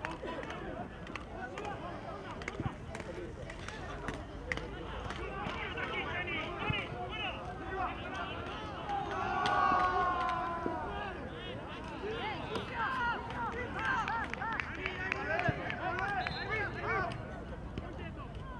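Football players shout to each other in the distance across an open field.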